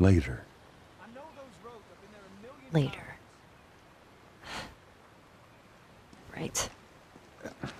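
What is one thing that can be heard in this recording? A girl answers quietly.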